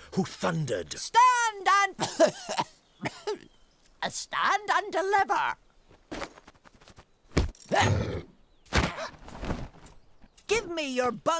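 A man speaks in a high, squeaky voice with lively animation.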